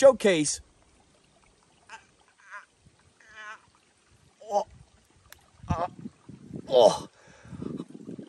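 A young man groans and yelps in pain close by.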